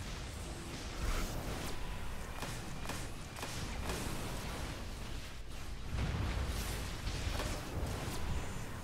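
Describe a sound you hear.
Energy strikes land with repeated booming impacts.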